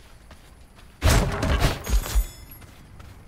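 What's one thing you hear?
A magic slash whooshes with a heavy impact.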